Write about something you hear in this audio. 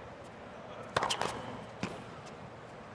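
A racket strikes a tennis ball with sharp pops.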